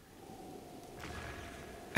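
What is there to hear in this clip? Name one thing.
A laser beam hums with a steady high whine.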